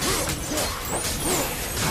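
Flaming chained blades whoosh through the air.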